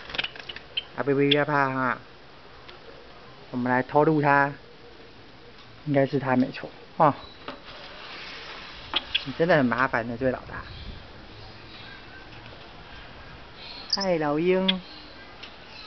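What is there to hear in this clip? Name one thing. A bird calls in short bursts.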